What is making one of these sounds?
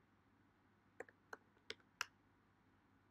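Keyboard keys click a few times as someone types.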